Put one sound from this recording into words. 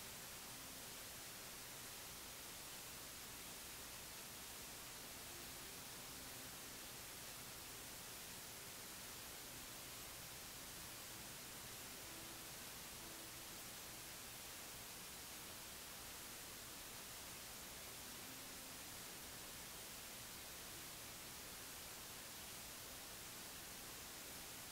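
A man speaks quietly and calmly.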